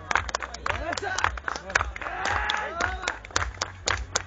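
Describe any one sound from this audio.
Men in a crowd shout and whoop.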